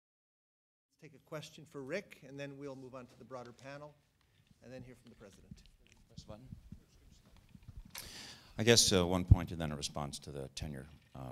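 A man speaks calmly through a microphone in a large room.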